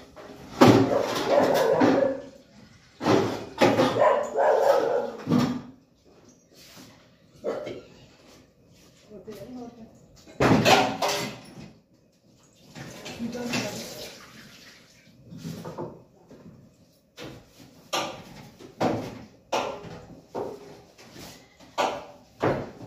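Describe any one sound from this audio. Metal dishes clatter and clink in a sink.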